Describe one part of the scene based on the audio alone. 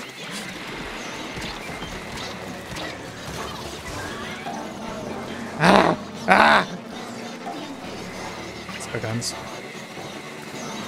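Splashy game sound effects and music play throughout.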